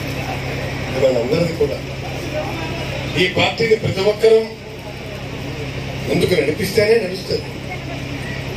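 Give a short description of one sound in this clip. A man speaks forcefully into a microphone, heard through loudspeakers outdoors.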